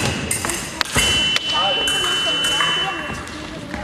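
An electronic scoring box beeps with a steady tone.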